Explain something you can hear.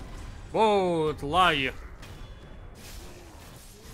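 A sword swings and strikes with a sharp hit.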